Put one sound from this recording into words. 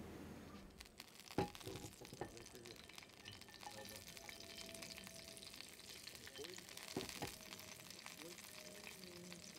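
Garlic sizzles gently in a hot pan.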